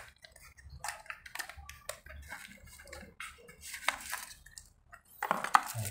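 A cardboard box rubs and taps as it is opened.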